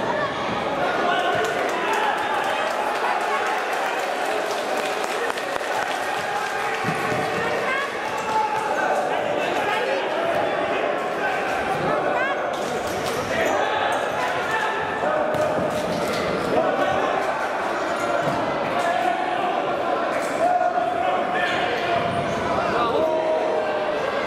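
Men players shout to each other across a large echoing hall.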